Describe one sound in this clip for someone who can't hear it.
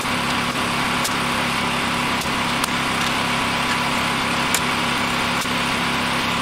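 A hammer knocks on wood.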